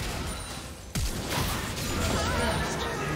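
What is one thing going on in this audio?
A chime sounds for a first kill.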